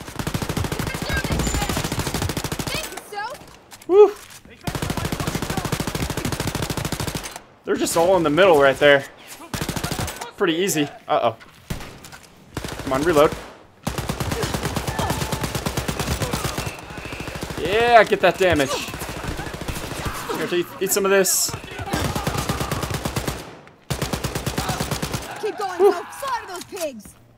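A machine gun fires rapid, rattling bursts.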